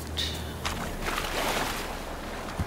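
Water splashes around wading legs.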